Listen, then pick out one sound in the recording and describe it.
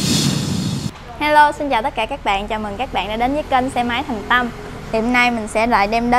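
A young woman speaks brightly and clearly into a microphone.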